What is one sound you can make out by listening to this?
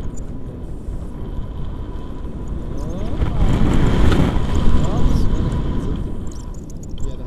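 Wind roars and buffets against the microphone.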